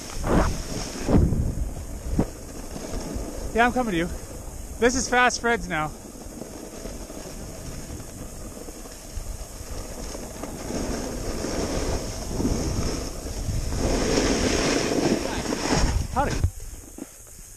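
A snowboard scrapes and hisses over packed snow.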